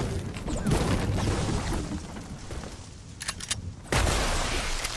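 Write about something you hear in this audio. A pickaxe strikes wood with a hollow thud.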